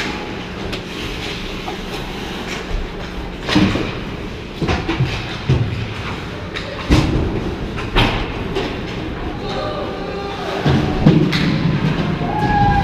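Sounds echo around a large indoor arena.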